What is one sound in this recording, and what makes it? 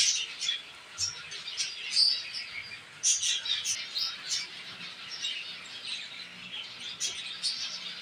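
Clay pots knock softly against each other.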